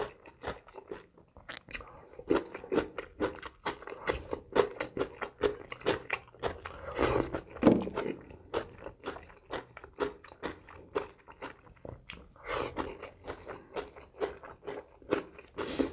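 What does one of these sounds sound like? A man chews food loudly and wetly close to a microphone.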